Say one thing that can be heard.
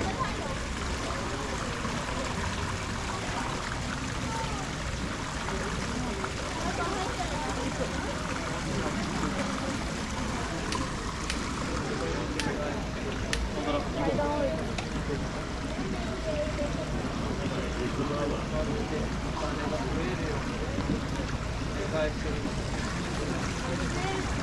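Water trickles and splashes over rocks.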